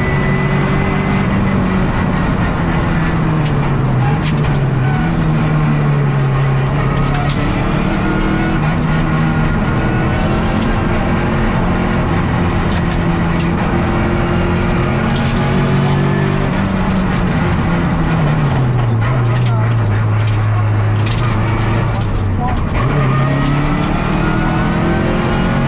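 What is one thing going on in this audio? A rally car engine roars loudly, revving up and dropping with each gear change.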